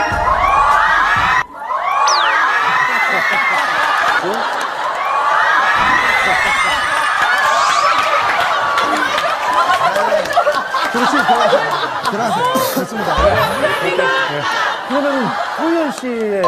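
A studio audience laughs and cheers loudly.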